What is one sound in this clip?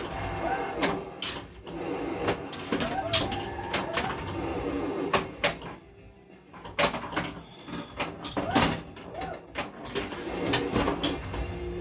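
A pinball machine plays electronic music and sound effects.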